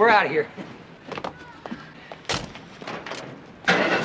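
A wooden crate crashes into a metal bin.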